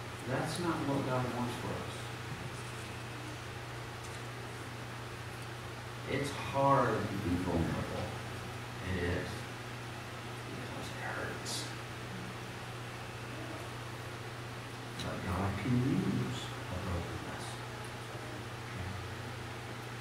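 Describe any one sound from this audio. A man speaks calmly into a microphone, with pauses, in an echoing room.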